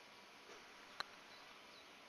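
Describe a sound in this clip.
A putter taps a golf ball softly.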